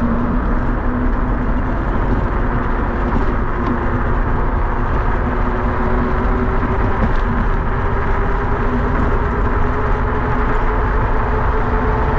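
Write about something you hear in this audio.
Wind rushes and buffets steadily outdoors.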